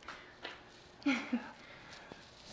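A woman laughs softly nearby.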